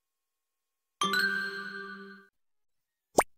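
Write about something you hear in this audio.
A game plays a short bright chime.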